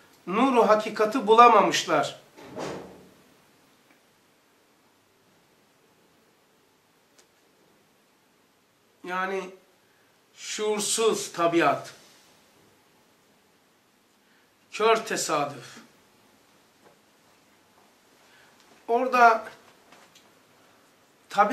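An elderly man reads aloud slowly and calmly into a close microphone, with long pauses.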